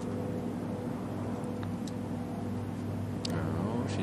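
A putter taps a golf ball softly.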